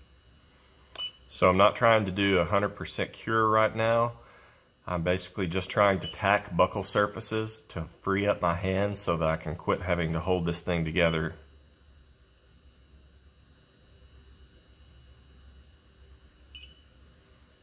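A dental curing light beeps.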